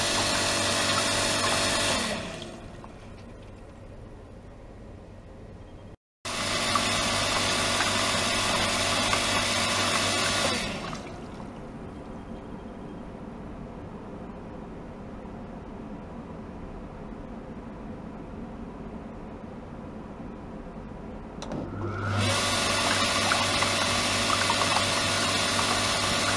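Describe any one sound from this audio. An electric pump motor hums steadily, switching off and on several times.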